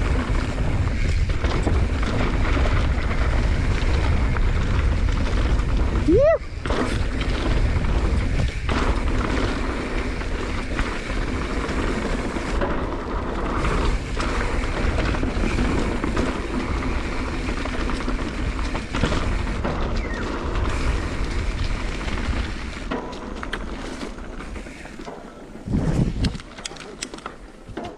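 Wind buffets loudly against a bike-mounted microphone.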